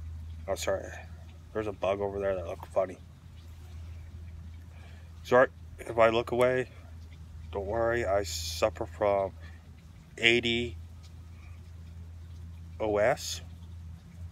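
A young man talks calmly and close up, with pauses.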